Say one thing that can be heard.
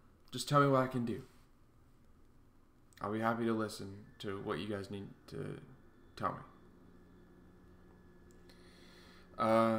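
A young man talks calmly and close to a microphone, with pauses.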